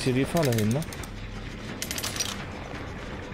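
A metal bear trap clanks as it is set.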